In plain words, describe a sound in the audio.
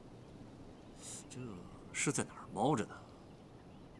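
A man speaks tensely and quietly, close by.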